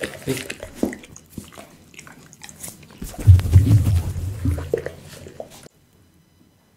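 A dog licks noisily close to a microphone.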